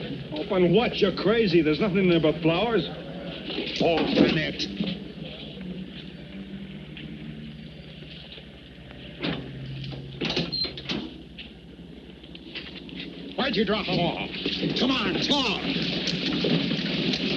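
A man speaks firmly and close by.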